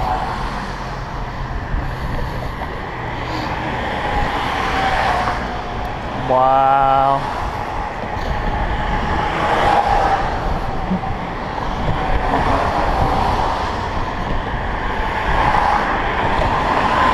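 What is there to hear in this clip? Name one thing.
Wind blows steadily against the microphone outdoors.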